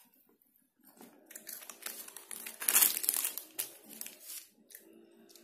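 Crispy fried crust crackles and crunches as hands tear it apart.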